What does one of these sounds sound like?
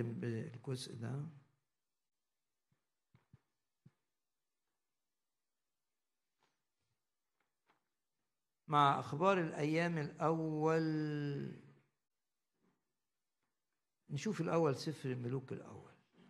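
An elderly man speaks slowly and calmly into a microphone, with long pauses.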